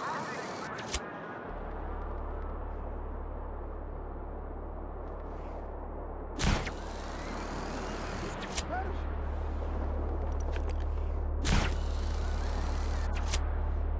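Wind rushes steadily past a gliding parachute.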